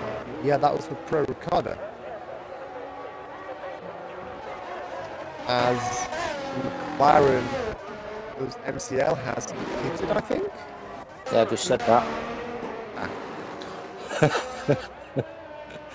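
Racing car engines whine and rise in pitch as they speed past.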